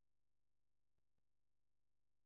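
A metal ladder knocks faintly on a hard floor.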